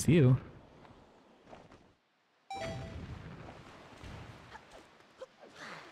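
Bright video game chimes and effects sound.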